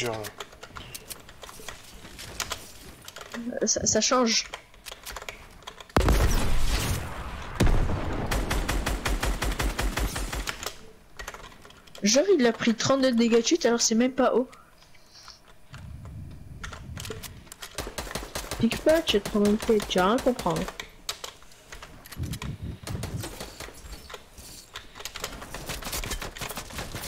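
Wooden walls and ramps snap into place with quick knocking clicks.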